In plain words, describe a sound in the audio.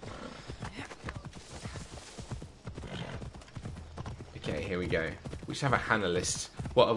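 Horse hooves thud rapidly while galloping over the ground.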